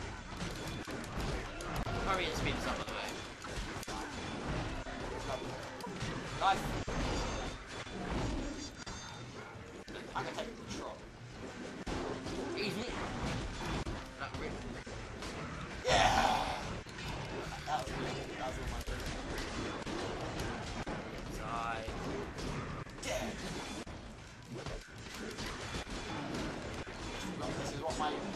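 Swords clash and clang in a busy melee.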